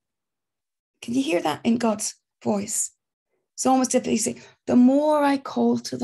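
A middle-aged woman speaks expressively over an online call.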